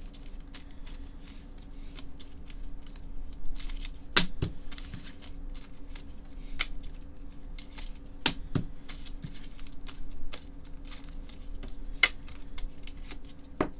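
Plastic card wrappers crinkle and rustle close by.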